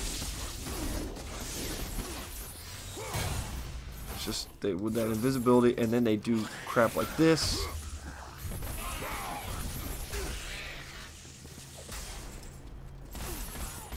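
Chained blades whoosh and slash through the air.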